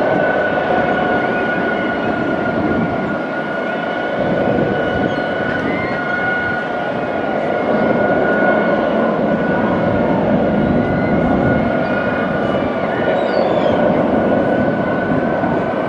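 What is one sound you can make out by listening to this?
Water laps and splashes gently nearby.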